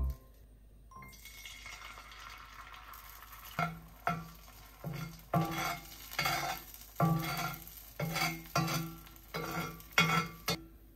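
Beaten egg pours into a hot pan and sizzles.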